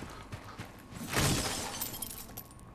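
A window shatters with a burst of breaking glass and splintering wood.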